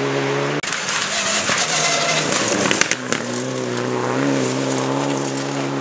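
A rally car engine roars loudly as it speeds past close by.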